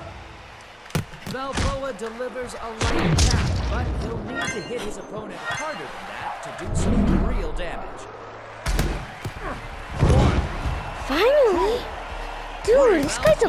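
Gloved punches land with heavy thuds.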